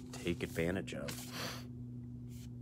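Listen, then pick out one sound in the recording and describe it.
A man speaks briefly and close up, then falls silent.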